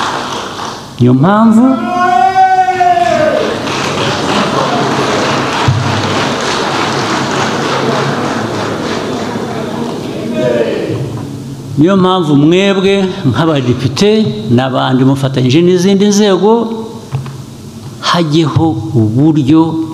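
A man speaks calmly and deliberately through a microphone in a large hall.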